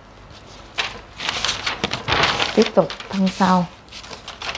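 Paper rustles as a sheet is moved.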